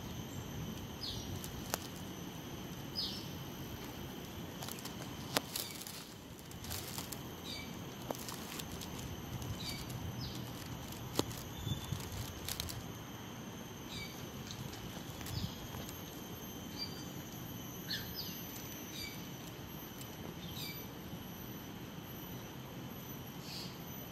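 Small animals give short, high squeaks now and then.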